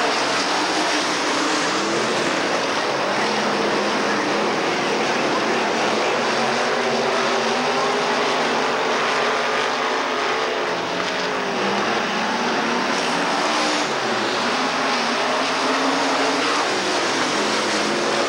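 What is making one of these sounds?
Race car engines roar loudly and rise and fall in pitch.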